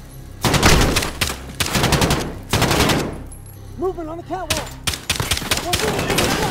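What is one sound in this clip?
Pistol shots ring out loudly, one after another.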